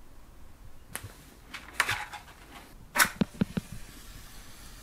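A cardboard box rustles and knocks as hands handle it.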